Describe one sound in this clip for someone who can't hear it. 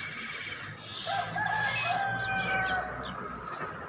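A puppy whimpers softly up close.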